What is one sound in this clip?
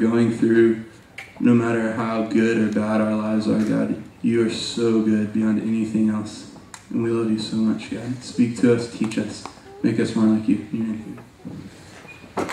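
A man sings into a microphone through loudspeakers in a large hall.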